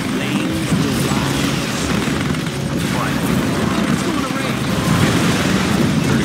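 Laser weapons zap and hum in a busy battle.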